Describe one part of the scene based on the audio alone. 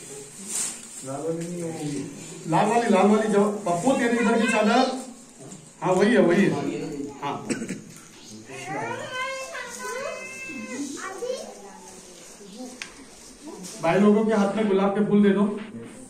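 Men recite a prayer aloud nearby, in a chanting voice.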